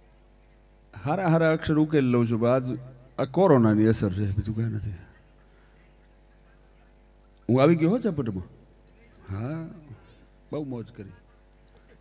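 A middle-aged man sings loudly through a microphone in long phrases.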